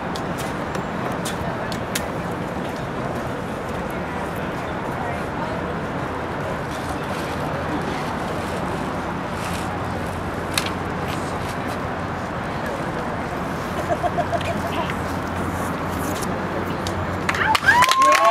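A young man speaks loudly outdoors.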